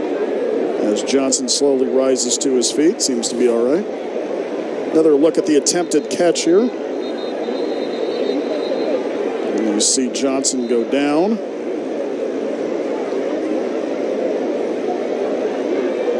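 A crowd cheers and roars in an open stadium.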